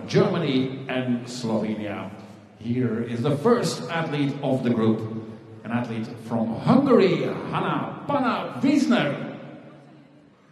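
A woman talks with animation close by.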